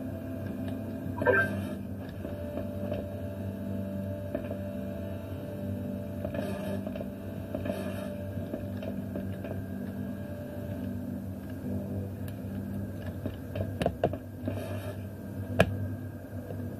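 Low droning video game music plays steadily through a television speaker.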